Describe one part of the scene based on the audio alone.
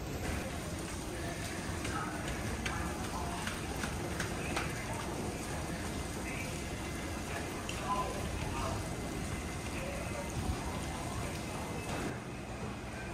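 Footsteps tap down concrete stairs.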